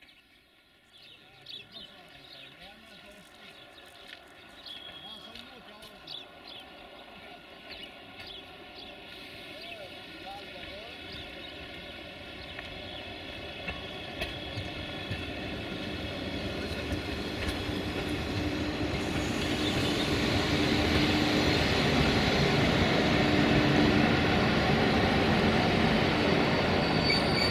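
An electric train approaches, rumbling louder and louder.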